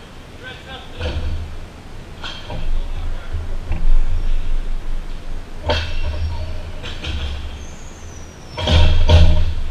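A ball is kicked with thuds in a large echoing hall.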